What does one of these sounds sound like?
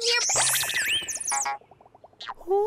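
Small cartoon creatures chirp and squeak playfully.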